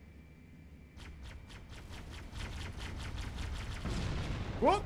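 An energy gun fires in quick bursts.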